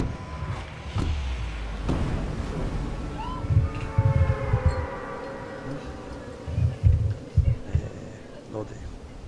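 Wind rushes loudly past a skydiver in freefall.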